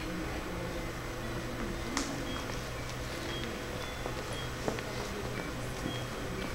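Footsteps tap softly on a hard floor in a room with a slight echo.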